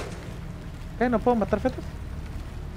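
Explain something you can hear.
A young man talks briefly with animation into a microphone.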